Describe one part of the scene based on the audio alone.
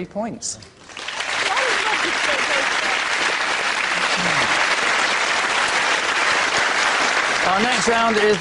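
A studio audience applauds and cheers loudly.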